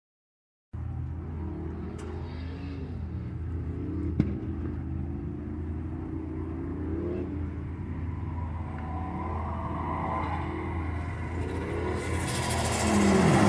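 Tyres screech as cars drift.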